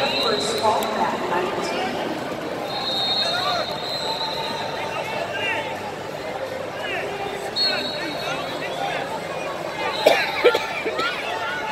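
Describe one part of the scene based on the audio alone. A large crowd chatters and calls out in an echoing arena.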